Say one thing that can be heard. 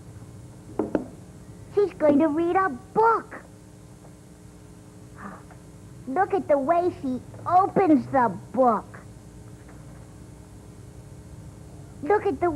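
A puppet character speaks in a high, raspy voice with animation, close by.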